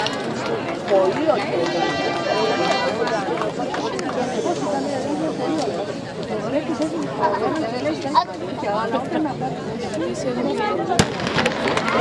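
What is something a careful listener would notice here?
A crowd of spectators chatters loudly nearby.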